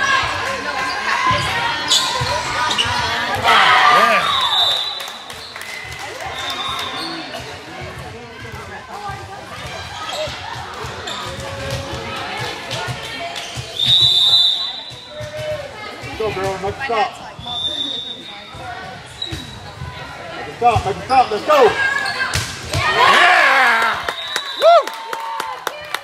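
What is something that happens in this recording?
Spectators and players shout and cheer in an echoing hall.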